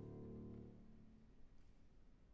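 A violin plays a sustained melody.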